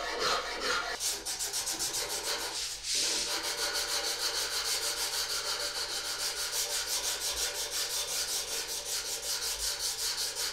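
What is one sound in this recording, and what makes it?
Sandpaper scrubs rapidly back and forth on wood.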